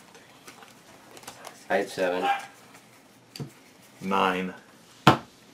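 Playing cards slap softly onto a table.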